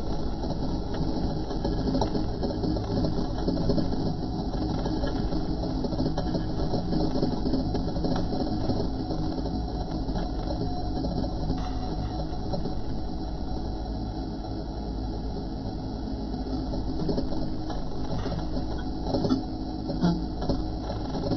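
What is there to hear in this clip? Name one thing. A heavy tank engine rumbles steadily close by.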